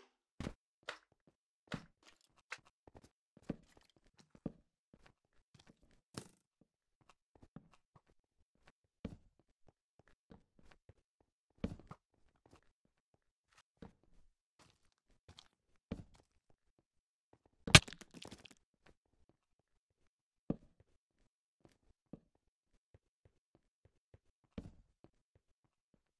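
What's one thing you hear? Footsteps tap and crunch on stone and gravel.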